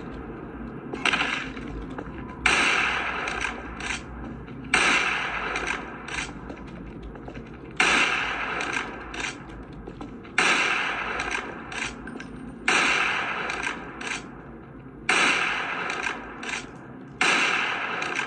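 Loud rifle shots ring out every few seconds, each followed by a short echo.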